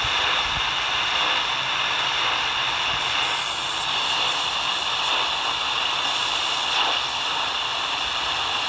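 A radio hisses with loud, steady static from its speaker.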